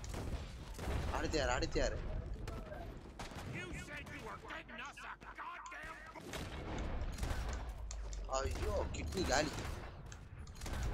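A man shouts with urgency.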